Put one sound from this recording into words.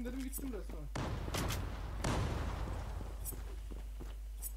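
A smoke grenade bursts and hisses loudly, then fades.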